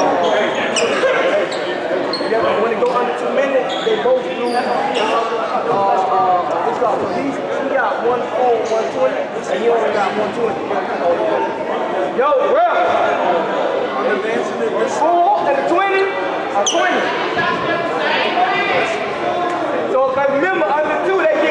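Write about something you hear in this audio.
Several men talk with animation in a large echoing hall.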